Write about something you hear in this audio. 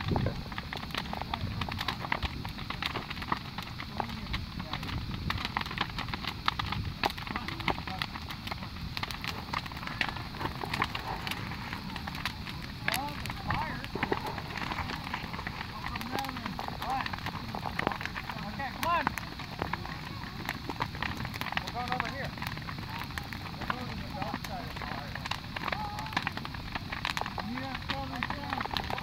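A large bonfire roars and crackles sharply outdoors.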